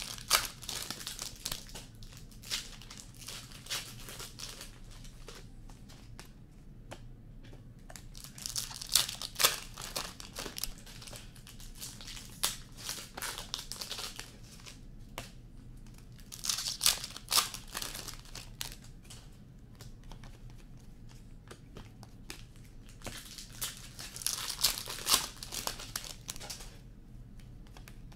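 Trading cards shuffle and flick through a person's hands.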